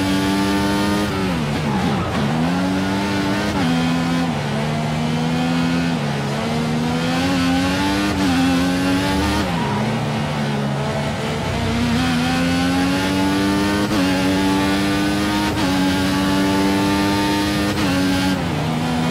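A racing car engine screams at high revs, dropping sharply on braking and climbing through the gears.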